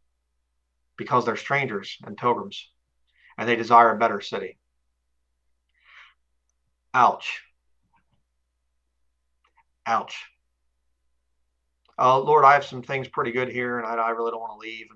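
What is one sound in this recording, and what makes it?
A man speaks calmly in short phrases, heard close through a microphone.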